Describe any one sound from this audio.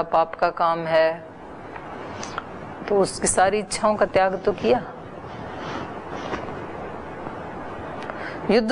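A middle-aged woman speaks calmly and clearly into a microphone, in short phrases with pauses.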